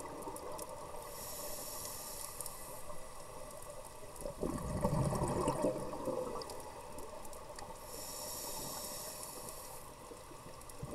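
A diver breathes in through a regulator with a steady hiss.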